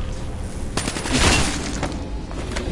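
An energy weapon fires with a sharp, crackling blast.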